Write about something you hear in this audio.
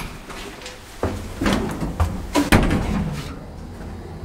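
A lift door rumbles as it slides open.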